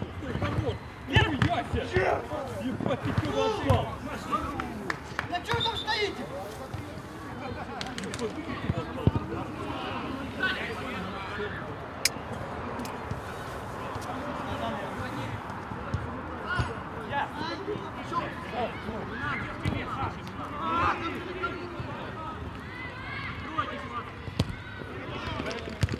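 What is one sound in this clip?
Men shout and call out to one another across an outdoor pitch.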